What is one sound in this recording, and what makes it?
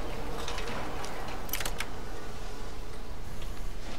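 A lock's pins click as a lock is picked.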